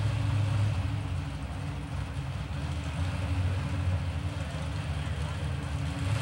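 A car engine idles with a deep, rough rumble nearby.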